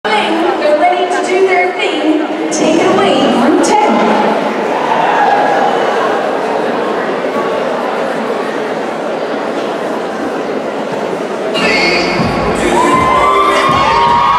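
A large crowd chatters and cheers loudly in a big echoing hall.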